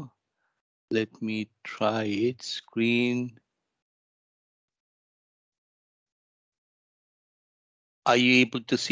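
A man speaks calmly through a headset microphone on an online call.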